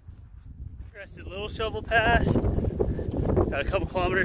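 A young man talks close to the microphone, outdoors in wind.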